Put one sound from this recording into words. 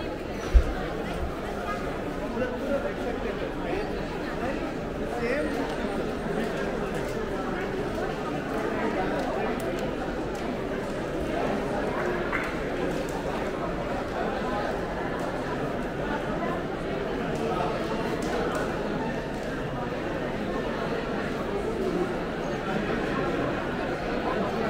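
A crowd chatters throughout, heard in a busy echoing indoor space.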